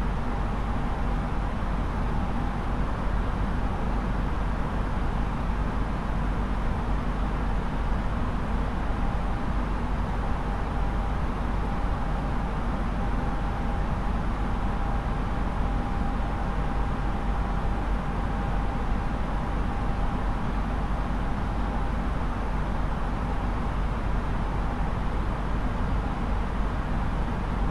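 A jet aircraft's engines drone steadily from inside the cockpit.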